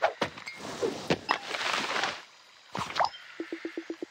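Bright game sound effects whoosh and chime.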